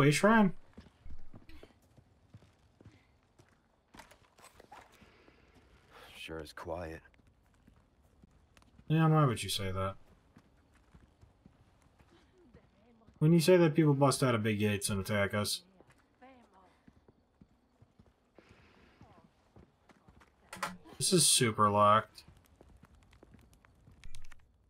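Footsteps crunch slowly on stone and dirt.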